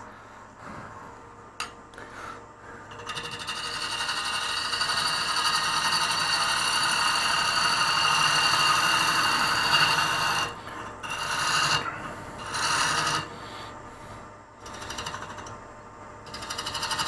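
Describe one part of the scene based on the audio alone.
A lathe hums steadily as it spins.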